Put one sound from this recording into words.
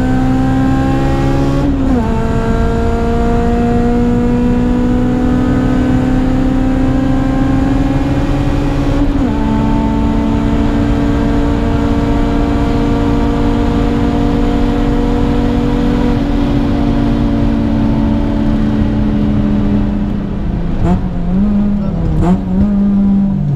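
Road and wind noise rush steadily around the car.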